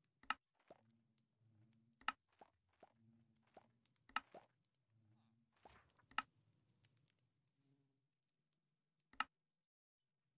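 Short, sharp clicks of a game menu sound every couple of seconds.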